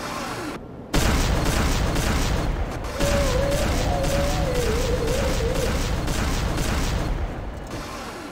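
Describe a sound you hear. A weapon fires in a rapid, steady stream.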